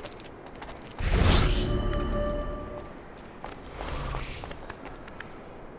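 A body thuds while scrambling up a wall.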